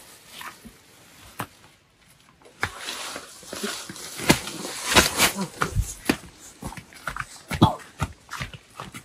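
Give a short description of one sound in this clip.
A heavy sack rustles against a shoulder.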